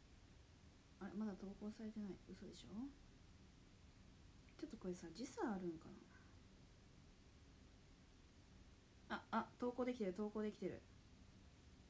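A young woman speaks softly and calmly, close to a microphone, in short bursts.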